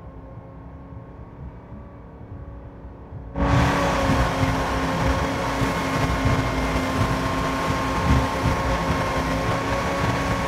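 A boat engine drones steadily, growing much louder.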